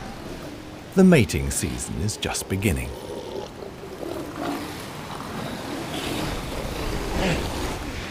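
Two fur seals roar and growl at each other.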